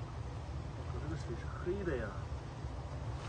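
A young man speaks briefly and calmly.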